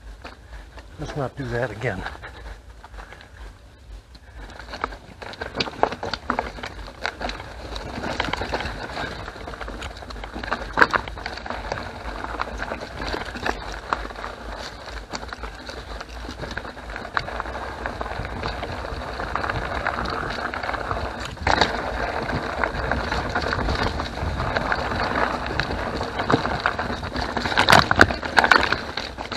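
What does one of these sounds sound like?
Bicycle tyres roll and crunch over a dirt trail.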